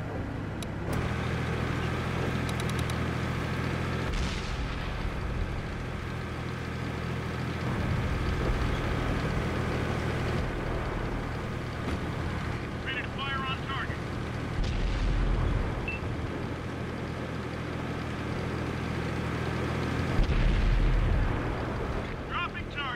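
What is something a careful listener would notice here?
A tank engine rumbles low and steadily as the tank drives.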